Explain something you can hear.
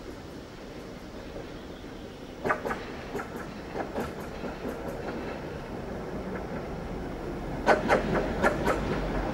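A tram rumbles closer along the rails.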